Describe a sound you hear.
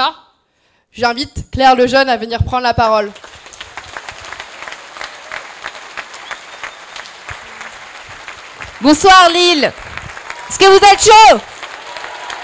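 A young woman speaks with animation into a microphone in a large echoing hall.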